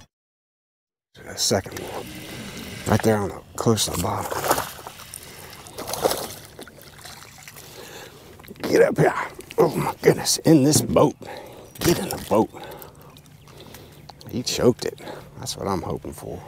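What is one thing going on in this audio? A fishing reel whirs as line is wound in.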